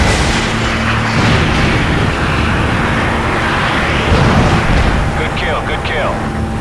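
A helicopter's rotor thumps steadily nearby.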